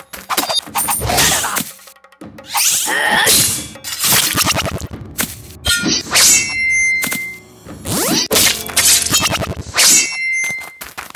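Weapons swoosh quickly through the air.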